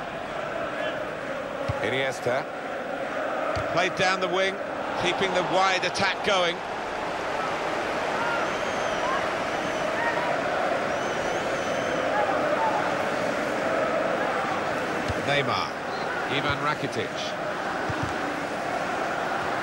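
A crowd murmurs and chants in a large stadium.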